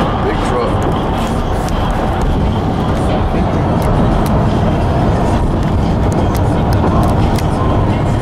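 A truck drives alongside on a highway with loud road and wind noise.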